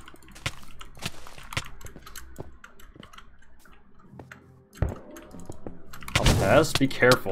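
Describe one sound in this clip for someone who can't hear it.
Sharp clicks and blows from a video game sound repeatedly.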